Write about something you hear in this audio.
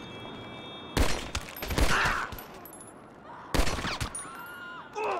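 Heavy punches land with loud, booming thuds.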